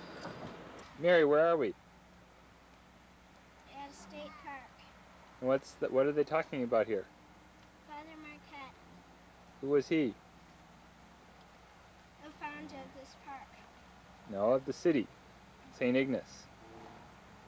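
A young girl talks close by, in short bursts with pauses.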